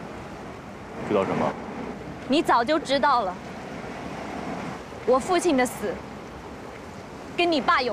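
A young woman speaks quietly and earnestly nearby.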